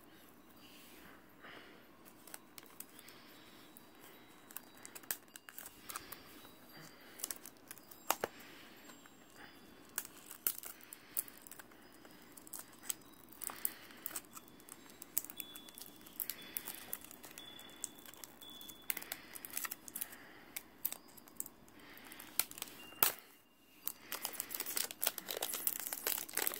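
A plastic game case clicks and rattles as fingers handle and turn it.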